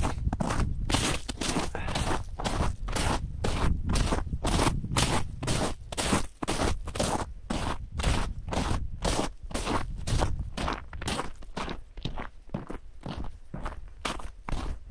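Footsteps crunch on ice and frozen snow.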